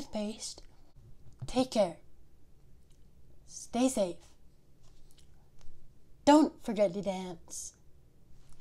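A young woman speaks clearly and with animation into a close microphone, in short bursts with pauses.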